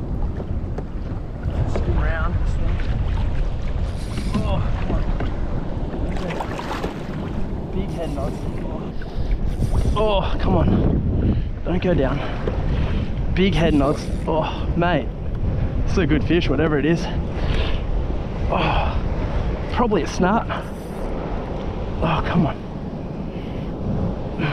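Wind buffets outdoors on open water.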